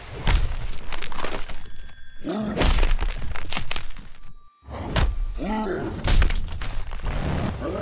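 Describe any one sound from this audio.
Bones crunch and flesh splatters.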